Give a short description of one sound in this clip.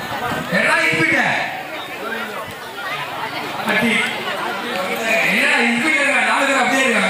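A man speaks loudly with animation through a microphone outdoors.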